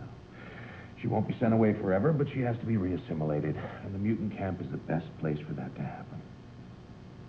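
An older man speaks in a low, earnest voice, close by.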